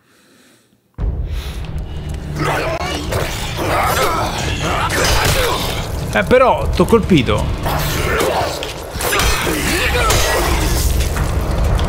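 Heavy blows and thuds land in a close fight.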